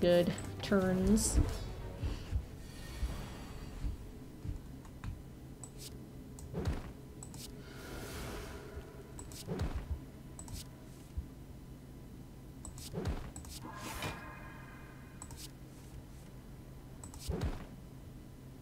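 Game sound effects whoosh and thud as cards are played.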